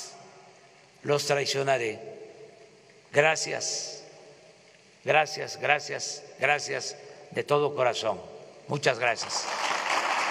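An elderly man speaks slowly and firmly into a microphone, with pauses.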